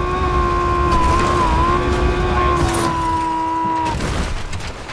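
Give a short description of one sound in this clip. A vehicle engine whines steadily, then cuts off.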